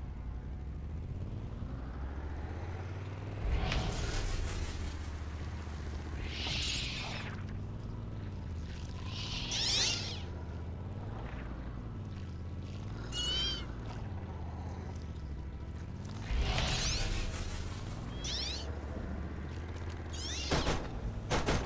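A vehicle engine hums and rises and falls in pitch.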